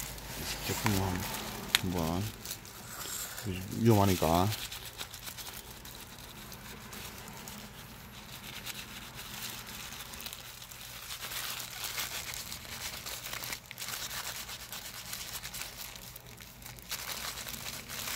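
Thin plastic gloves crinkle and rustle.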